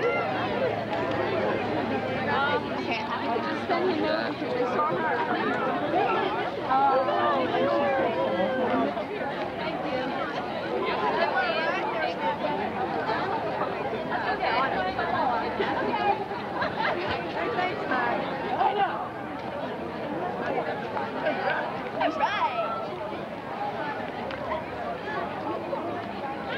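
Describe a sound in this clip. A crowd of young people chatters nearby outdoors.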